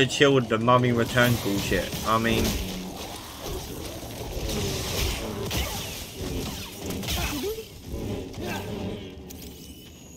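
Energy blades hum and clash in a fight.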